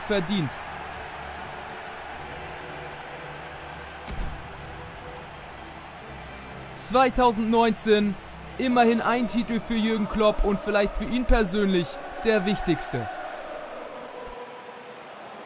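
A large crowd cheers steadily in a stadium.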